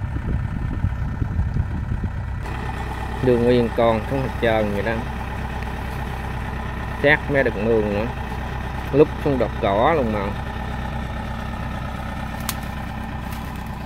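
A combine harvester engine runs with a steady low rumble.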